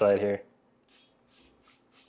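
A spray bottle hisses in short bursts.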